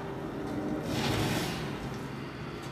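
A burst of flame whooshes loudly.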